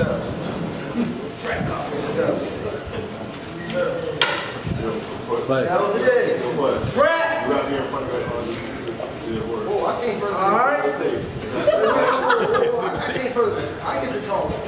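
Young men talk loudly and with animation over one another, close by.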